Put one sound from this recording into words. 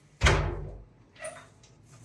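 A metal door bangs open.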